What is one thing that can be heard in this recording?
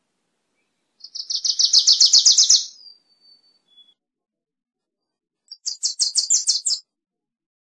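A small songbird sings two quick, chattering trills close by.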